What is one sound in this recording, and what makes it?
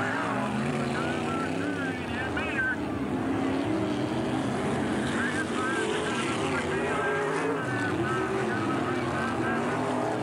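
Race car engines roar and whine as the cars speed past.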